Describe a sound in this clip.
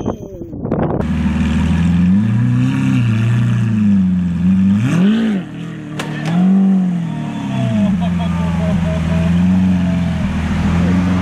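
A sports car engine rumbles and revs loudly close by.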